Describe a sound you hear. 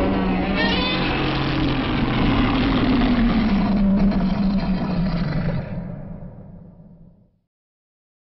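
A giant monster roars loudly and fades away.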